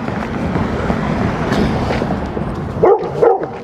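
A pickup truck drives past close by.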